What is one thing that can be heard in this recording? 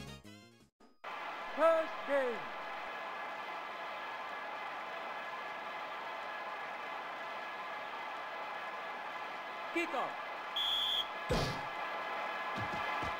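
A stadium crowd cheers steadily in a video game.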